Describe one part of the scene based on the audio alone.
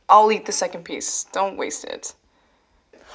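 A young woman speaks close by with emotion.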